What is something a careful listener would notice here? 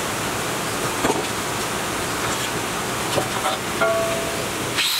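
A metal cylinder clanks as it is shifted on a wooden table.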